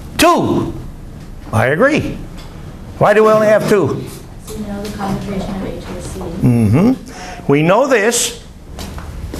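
An elderly man speaks with animation to a room.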